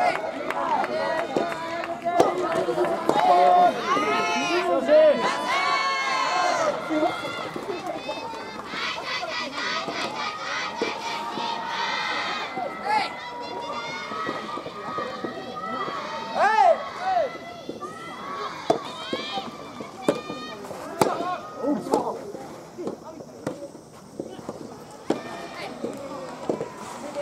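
Young players shout and cheer outdoors.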